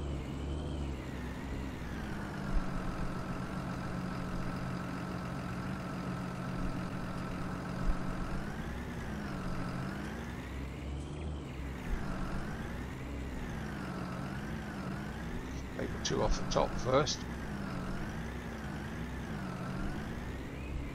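A tractor engine hums steadily and rises and falls in pitch as it drives.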